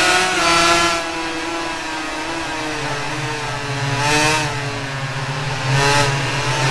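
A two-stroke 250cc racing motorcycle engine drops in revs as the bike slows for a corner.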